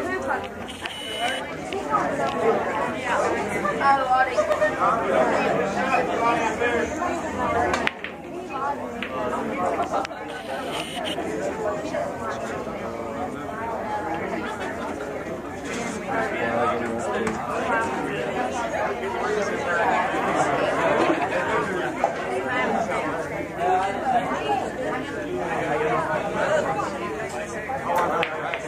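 A crowd of young people chatters loudly nearby.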